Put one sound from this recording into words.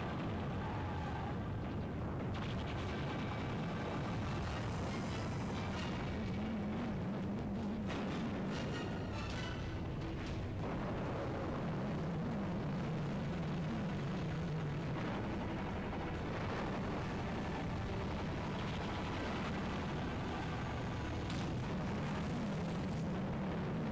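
A video game race car engine drones.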